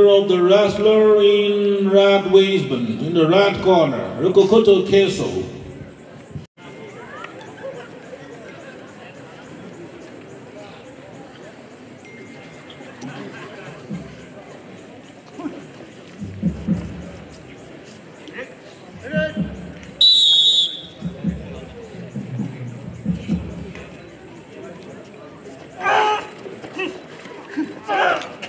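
A large outdoor crowd murmurs in the background.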